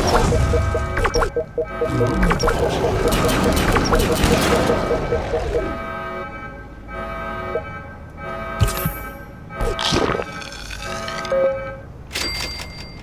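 Electronic game music plays with a bouncy melody.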